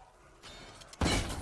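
A gun fires a loud shot.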